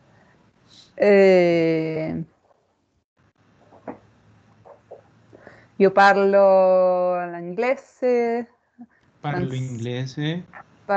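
A woman speaks slowly and clearly through an online call, drawing out her words.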